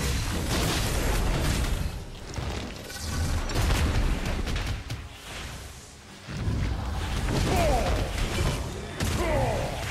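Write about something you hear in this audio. Weapons strike a creature with heavy, booming magical blasts.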